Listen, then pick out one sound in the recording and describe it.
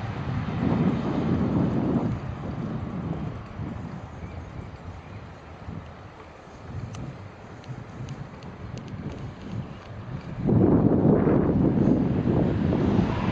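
Tyres roll steadily over a paved path.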